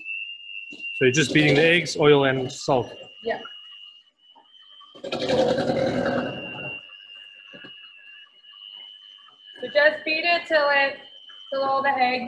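An electric hand mixer whirs steadily in a metal bowl.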